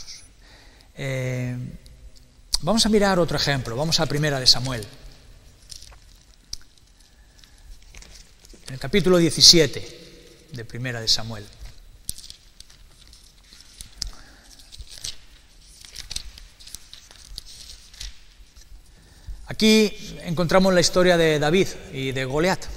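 A middle-aged man speaks calmly into a close microphone, with long pauses.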